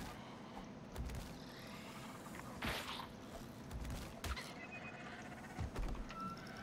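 A spear strikes a creature with dull thuds.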